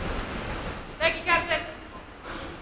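A man calls out briefly in a large echoing hall.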